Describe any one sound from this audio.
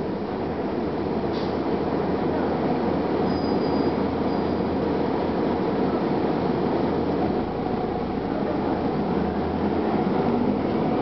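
A bus engine rumbles steadily from inside the bus as it drives along.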